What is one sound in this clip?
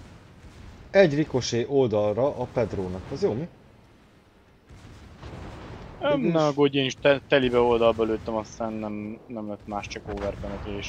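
Heavy naval guns fire with loud booms.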